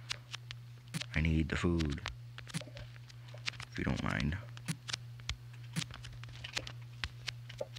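Crops being harvested break with short soft crunching pops.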